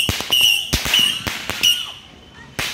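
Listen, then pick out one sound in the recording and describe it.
Fireworks bang and crackle in quick bursts.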